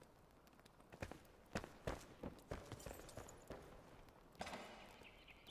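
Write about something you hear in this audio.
Footsteps thud across a stone floor.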